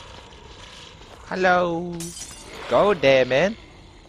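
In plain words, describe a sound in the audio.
A glass bottle shatters.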